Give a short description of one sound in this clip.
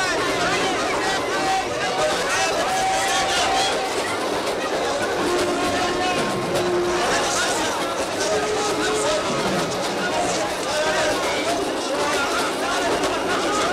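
A crowd of men and women shout and clamor all at once, close by.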